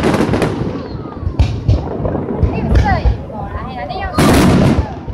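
Fireworks whistle as they rise.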